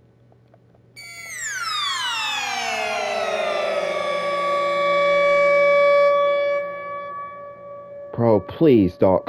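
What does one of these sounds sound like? An electronic tone swoops downward and then holds steady.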